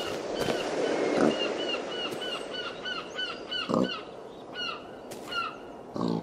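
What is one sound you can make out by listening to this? Pigs grunt and oink nearby.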